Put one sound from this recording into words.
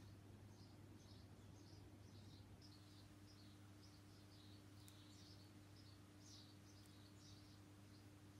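A small tool softly scrapes through wet paint.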